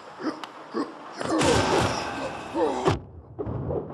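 A blade swishes in a sharp slash.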